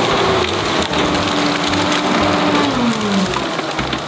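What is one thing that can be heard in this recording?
Dry branches crack and crunch under a loader's bucket.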